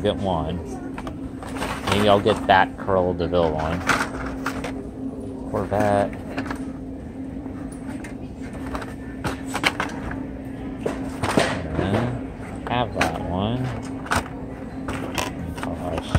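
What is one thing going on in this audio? Plastic toy packages rustle and clack as a hand sorts through them.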